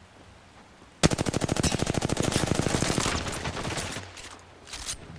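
Rapid automatic gunfire rattles in a fast burst.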